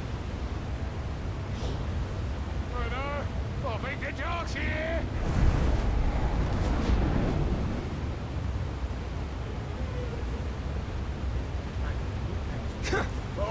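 Footsteps scuff softly on stone.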